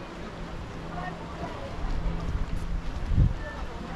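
Footsteps pass by on pavement.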